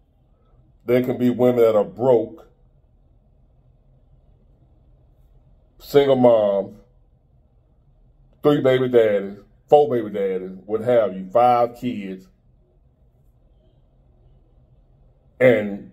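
A man speaks calmly and clearly, close to a microphone, in short phrases with pauses.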